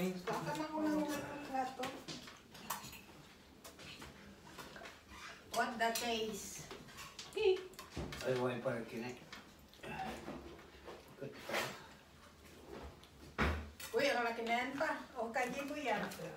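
Dishes and utensils clink as a man serves food.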